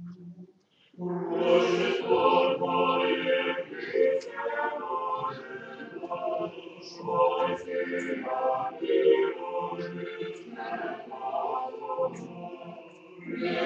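A congregation of women sings a chant together in a large echoing hall.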